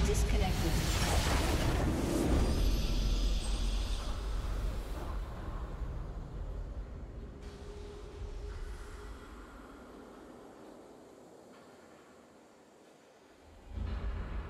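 A triumphant video game fanfare swells and slowly fades.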